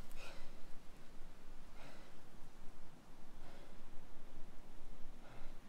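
A man gasps and breathes heavily in pain, close by.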